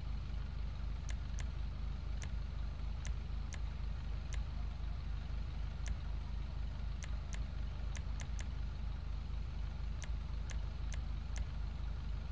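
A car engine idles with a low, steady rumble.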